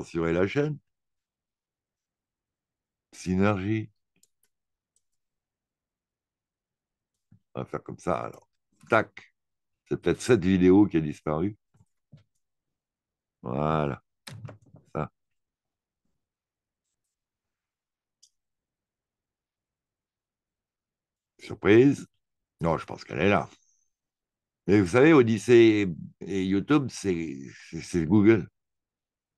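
A man talks in short bursts, close to a microphone.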